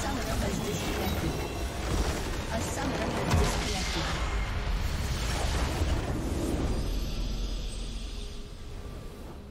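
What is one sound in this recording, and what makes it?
Game battle effects crash and explode loudly.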